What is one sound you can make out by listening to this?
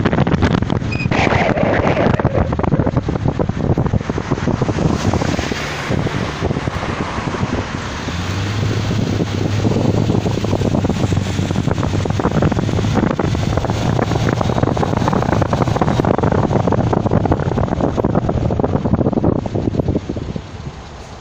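Wind buffets loudly against the microphone from a moving vehicle.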